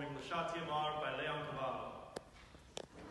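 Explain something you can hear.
A man sings in a full operatic voice in a large echoing hall.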